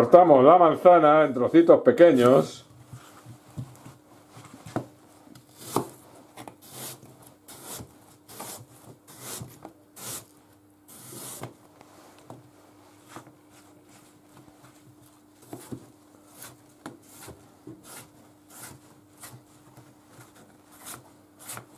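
A knife cuts through an apple with crisp crunches.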